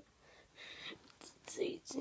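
Hands rustle and brush against a soft plush toy.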